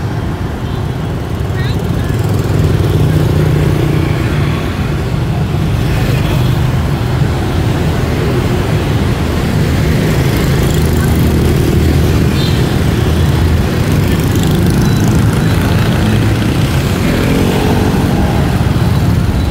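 Scooter and motorbike engines hum past in busy street traffic.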